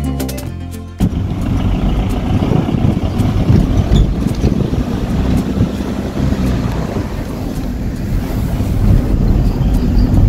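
A car engine rumbles steadily from inside the cabin as the car drives.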